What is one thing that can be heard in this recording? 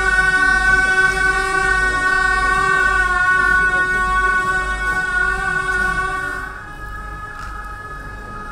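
A group of men chant together in a steady drone.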